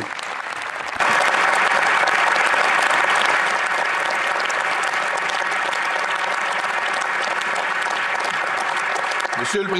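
A large crowd applauds loudly and steadily.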